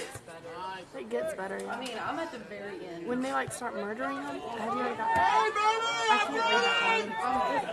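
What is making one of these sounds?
A crowd of spectators cheers and yells with growing excitement.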